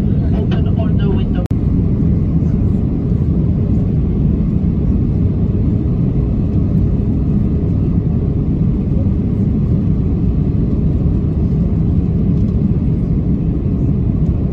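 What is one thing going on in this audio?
A jet airliner's engines roar with a steady, low rumble inside the cabin.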